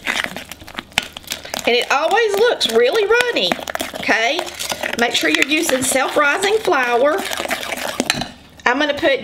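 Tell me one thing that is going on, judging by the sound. A whisk clinks and scrapes rapidly against a glass bowl.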